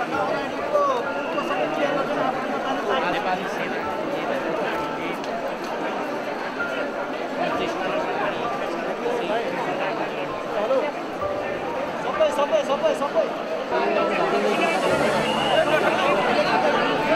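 A crowd of men and women chatter all around at close range.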